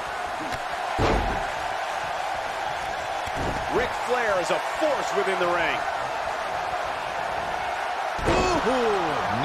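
A body slams heavily onto a wrestling mat.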